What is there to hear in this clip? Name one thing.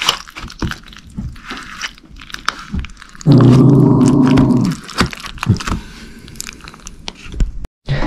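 A spoon scrapes and clinks in a plastic bowl.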